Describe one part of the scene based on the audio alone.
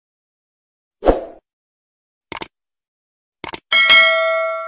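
A gun fires a few sharp shots.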